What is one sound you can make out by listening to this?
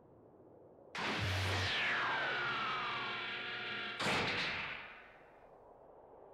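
A pod hatch hisses and whirs open.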